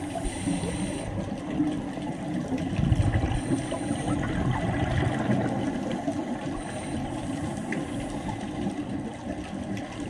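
Air bubbles from a diver's breathing gurgle and rumble, muffled underwater.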